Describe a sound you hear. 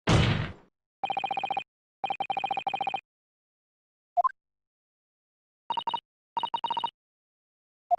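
Rapid electronic blips chatter in short bursts.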